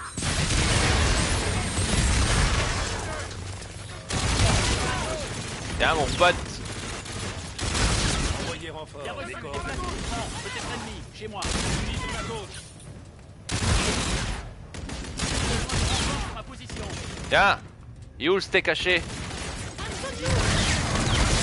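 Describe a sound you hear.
Guns fire in loud rapid bursts.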